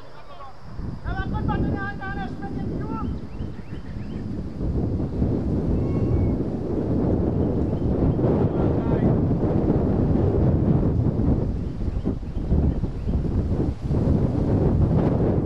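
Wind blows hard against the microphone outdoors.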